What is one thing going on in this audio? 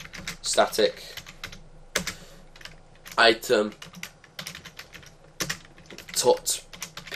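Keys clatter on a keyboard in quick bursts.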